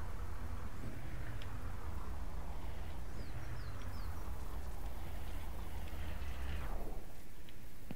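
A pickup truck engine idles with a low rumble.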